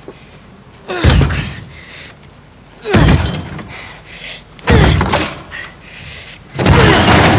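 A young woman grunts loudly with effort.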